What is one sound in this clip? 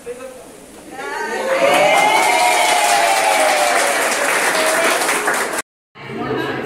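A group of women sing together loudly.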